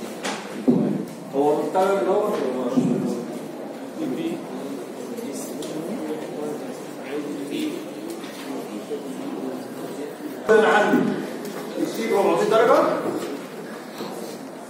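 A man speaks through a microphone and a loudspeaker, explaining calmly in a room with some echo.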